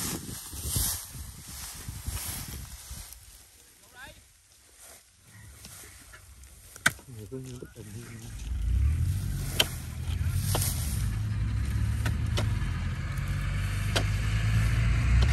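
A hoe thuds and scrapes into wet soil.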